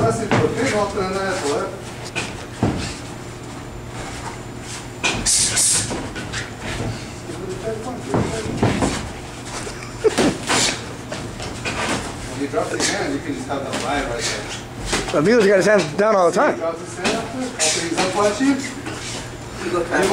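Boxing gloves thud against pads in quick bursts.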